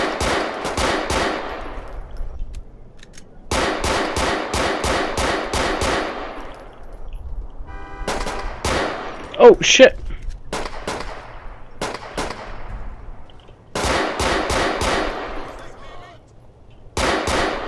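A pistol fires in rapid bursts of sharp shots that ring out in the open air.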